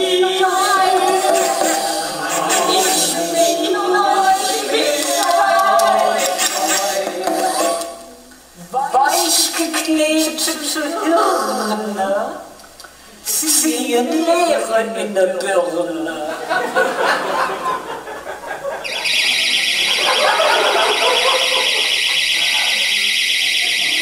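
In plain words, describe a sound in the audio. A woman sings close into a microphone.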